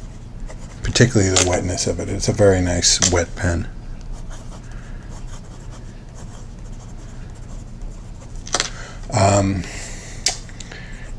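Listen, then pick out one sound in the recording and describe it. A fountain pen nib scratches softly across paper.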